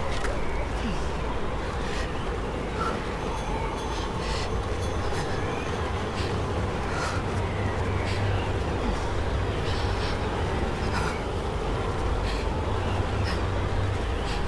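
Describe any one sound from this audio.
A strong wind howls steadily through a snowstorm.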